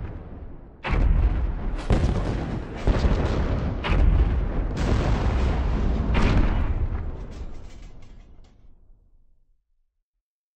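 Loud explosions boom and rumble, then fade away.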